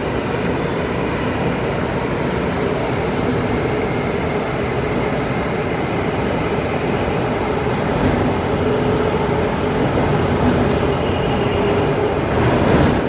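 A subway train rumbles and hums steadily as it rides along the track.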